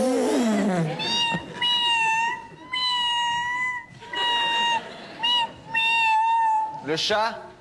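A woman sings in a high voice through a microphone.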